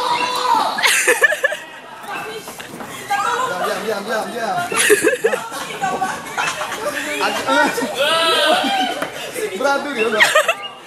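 Young women chatter and laugh excitedly nearby.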